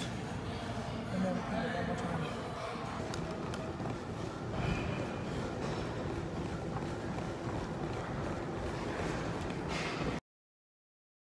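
A treadmill belt hums steadily.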